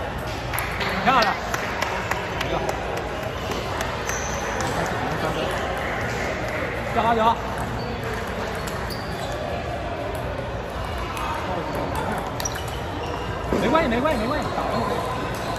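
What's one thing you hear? Girls shout short cheers after points.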